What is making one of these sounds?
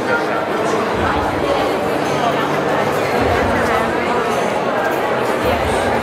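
A crowd of men and women chatter all around in a busy, echoing hall.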